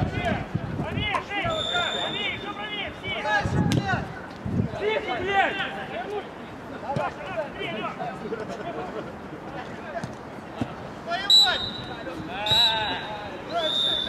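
Men shout to each other across an open outdoor pitch.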